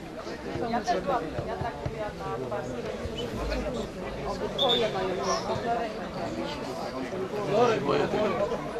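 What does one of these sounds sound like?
Several young men talk and call out to each other outdoors.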